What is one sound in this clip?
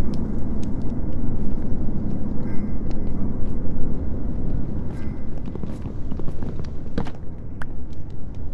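A block is struck with a series of short, dull knocks.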